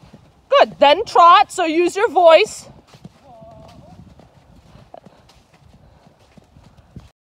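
A horse's hooves thud softly on sand at a canter.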